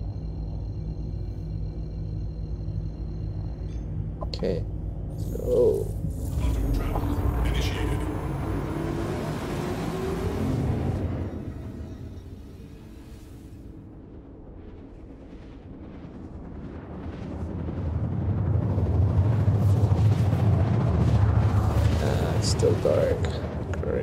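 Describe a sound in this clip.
A spaceship engine rumbles low and swells louder.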